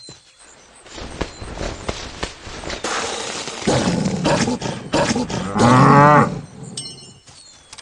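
A wolf snarls and bites.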